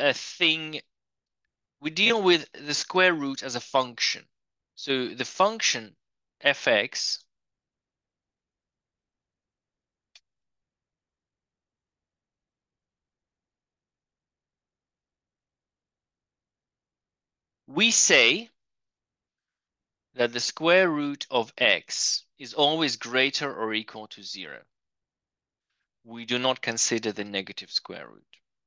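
A man speaks calmly and closely into a microphone, in bursts with pauses.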